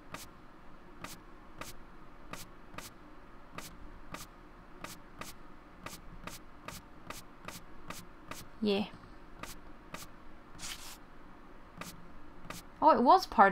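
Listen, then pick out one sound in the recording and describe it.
Short soft clicks sound as paper puzzle pieces are moved into place.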